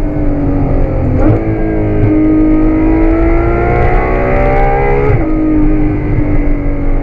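Tyres rumble on the road.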